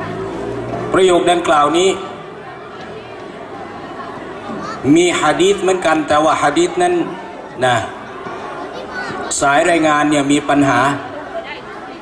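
A man chants in a drawn-out, sing-song voice through a microphone and loudspeakers, with pauses between phrases.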